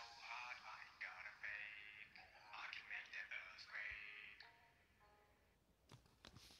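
A hip-hop loop with chopped vocal samples plays, then stops.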